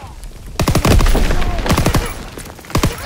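A fire explodes with a loud boom.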